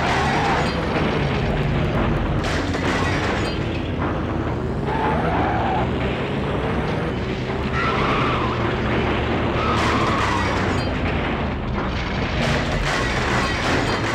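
A car crashes and tumbles with loud thuds.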